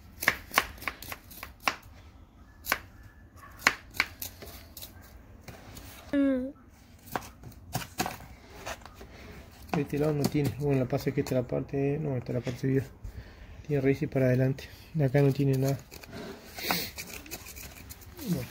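A wooden stick scrapes and picks at dry soil, with small crumbly clicks.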